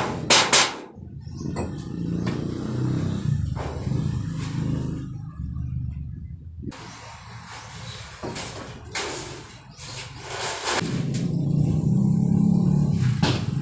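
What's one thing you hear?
A thin metal sheet clanks and rattles.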